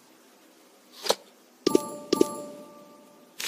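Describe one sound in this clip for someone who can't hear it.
A metal box lid clicks and creaks open.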